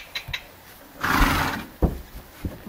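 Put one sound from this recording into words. A horse snorts loudly nearby.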